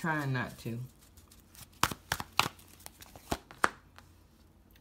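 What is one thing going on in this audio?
Playing cards tap and slap down onto a soft table surface.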